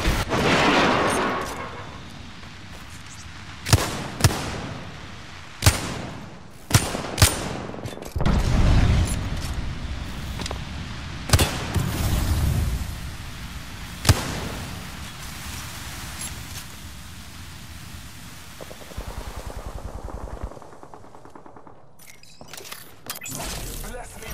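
A game weapon clicks and clatters as it is reloaded.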